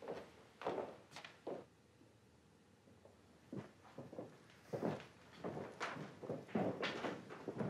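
Footsteps ring out on a hard floor in a large echoing hall.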